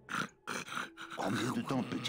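A large creature snores loudly.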